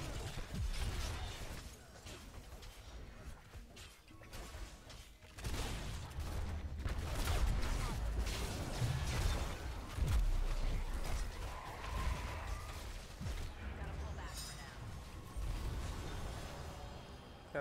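Game spell effects and attacks crackle and boom during a fight.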